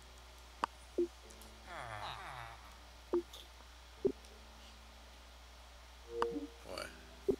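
Short electronic menu tones blip now and then.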